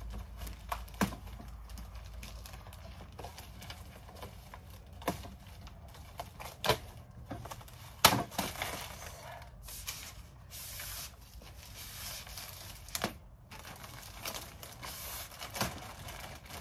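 A metal folding table knocks and clatters.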